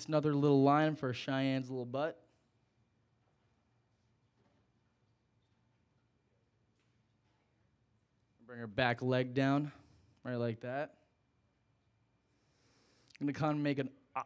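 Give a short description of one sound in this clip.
A young man talks calmly into a microphone, pausing between phrases.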